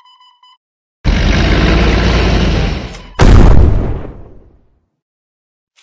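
A heavy blast roars and booms, then fades.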